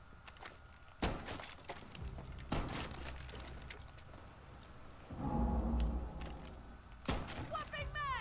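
Gunshots crack loudly in short bursts.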